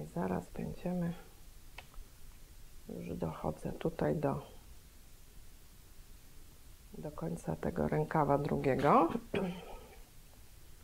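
A middle-aged woman speaks calmly and close to a clip-on microphone.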